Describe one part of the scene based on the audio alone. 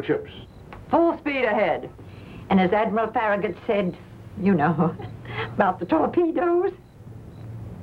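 An older woman talks with animation.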